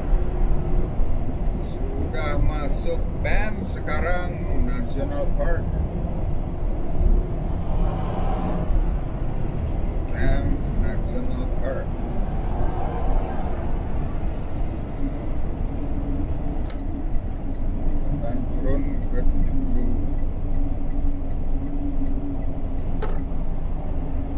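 A truck's engine rumbles steadily as it drives along a highway.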